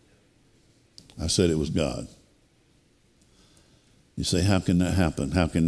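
An older man speaks with animation through a microphone.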